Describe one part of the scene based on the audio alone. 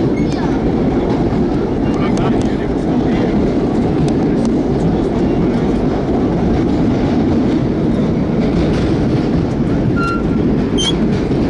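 A vehicle rumbles steadily, heard from inside.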